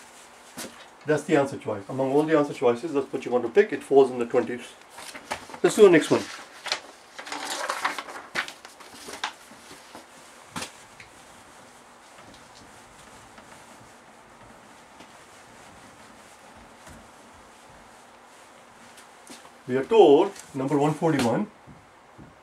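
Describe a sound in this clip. An elderly man speaks calmly and closely.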